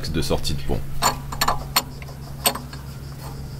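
A metal tool clicks against a car part.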